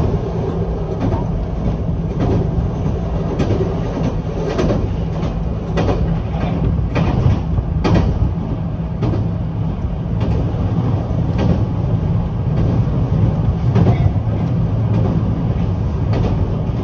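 A train rumbles steadily along the tracks.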